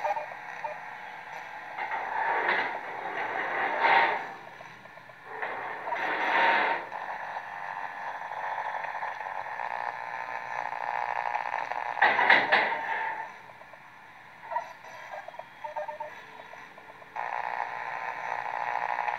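Electronic game music plays through a small speaker.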